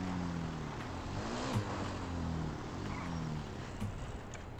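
A motorbike engine revs and idles.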